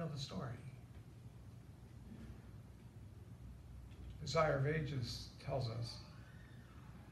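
A man speaks slowly into a microphone, heard through loudspeakers in an echoing room.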